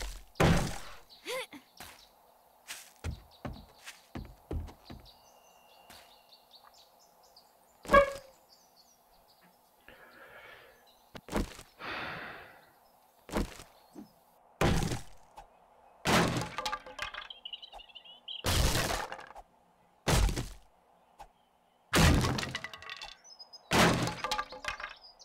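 A hammer knocks on wooden planks.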